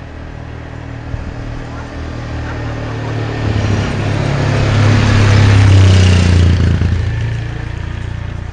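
A quad bike engine drones as it passes by.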